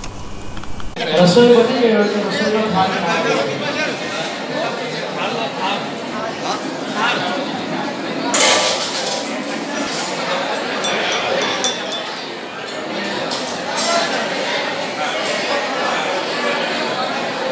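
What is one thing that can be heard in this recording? A crowd of men and women chants together.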